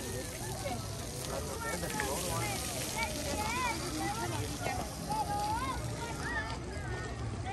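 A crowd of people chatters nearby outdoors.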